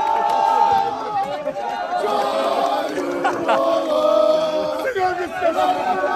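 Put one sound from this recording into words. A man shouts excitedly up close.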